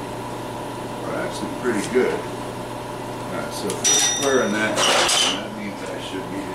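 A metal rod clanks and scrapes against a steel table.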